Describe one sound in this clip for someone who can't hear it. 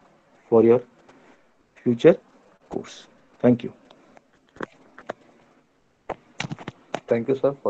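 A man speaks calmly in short phrases into a microphone.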